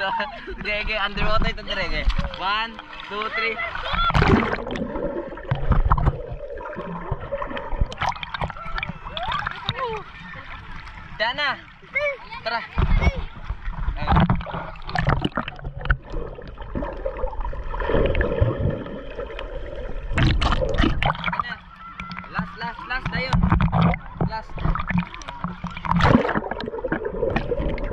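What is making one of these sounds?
Water splashes and sloshes around swimmers.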